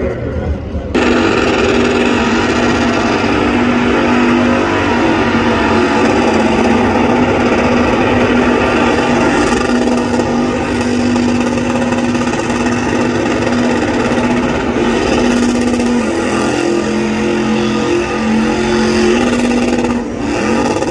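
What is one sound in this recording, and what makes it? Tyres screech as they spin on pavement.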